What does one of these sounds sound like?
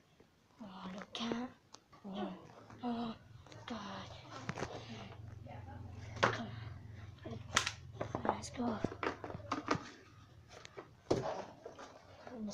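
A child talks and giggles close by.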